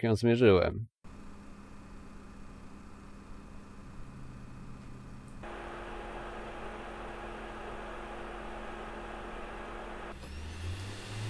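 A games console fan whirs steadily at a low, even level.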